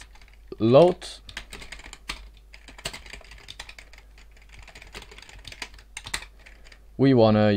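Keyboard keys click in quick bursts.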